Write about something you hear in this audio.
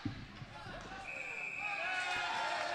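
A referee's whistle blows a short, shrill blast.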